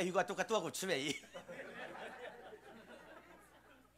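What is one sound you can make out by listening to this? A small audience laughs softly.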